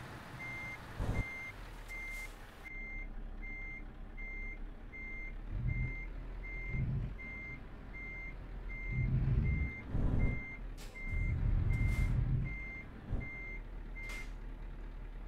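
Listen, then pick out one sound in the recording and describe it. A reversing alarm beeps steadily.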